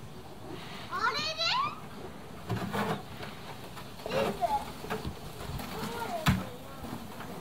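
A young child calls out and squeals nearby.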